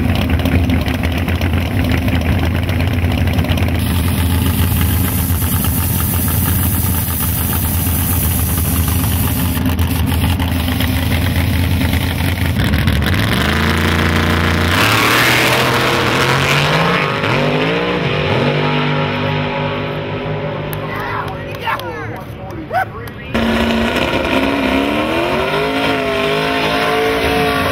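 A race car engine idles with a loud, rough rumble.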